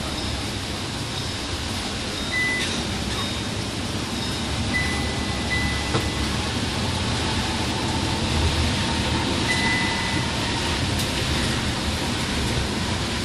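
Windscreen wipers sweep back and forth.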